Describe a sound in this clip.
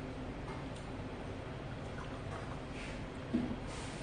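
A man pours a drink from a bottle.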